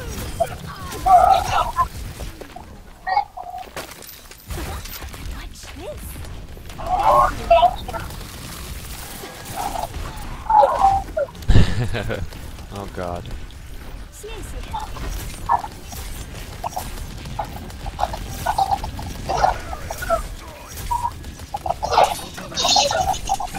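Video game explosions and impacts bang.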